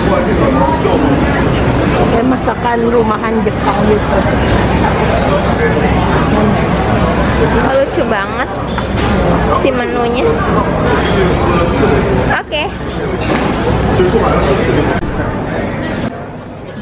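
Many people chatter around, with voices of men and women mixing into a steady babble.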